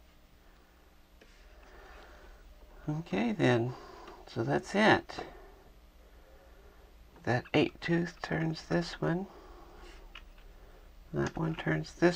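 Small plastic parts click softly as they are handled and fitted together.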